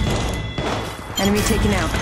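Gunshots crack in quick bursts in a video game.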